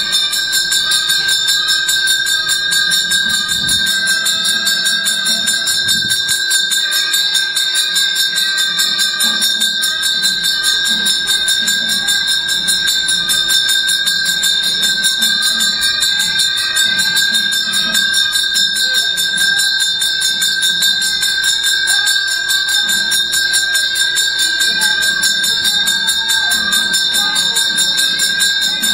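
Women murmur and chant nearby outdoors.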